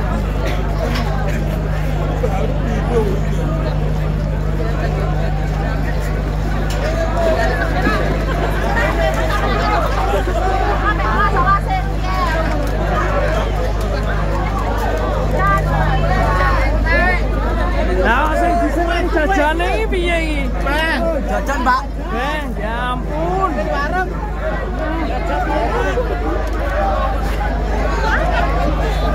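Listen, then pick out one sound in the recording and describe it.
A large outdoor crowd talks and shouts.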